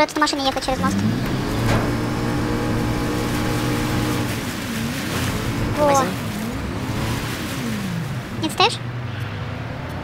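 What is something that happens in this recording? A motorboat engine starts and drones steadily, rising and falling in pitch.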